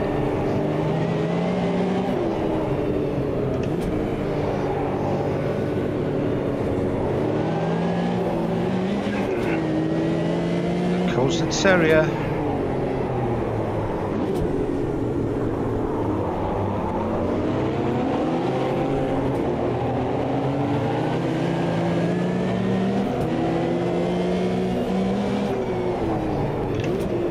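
A racing car engine roars close by, rising and falling in pitch as the gears shift.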